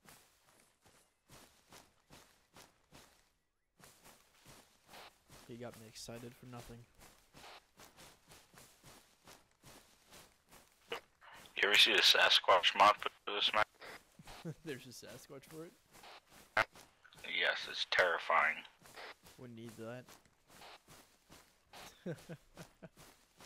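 Footsteps crunch steadily over grass and twigs.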